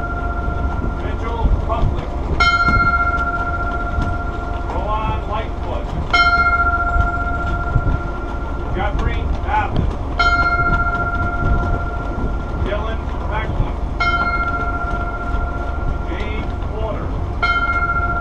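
A man speaks loudly to a group at some distance.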